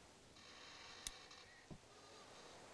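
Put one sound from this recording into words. A switch clicks as it is flipped.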